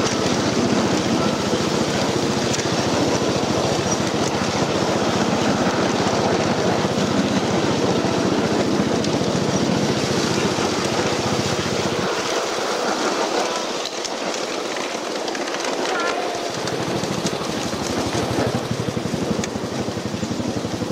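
A small train rumbles and clatters along rails outdoors.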